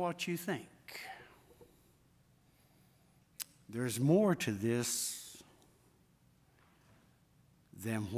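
A middle-aged man preaches with animation through a microphone, with pauses between phrases.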